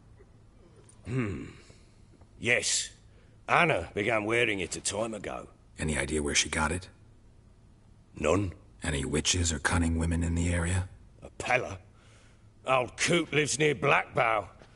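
An elderly man speaks slowly and thoughtfully, close by.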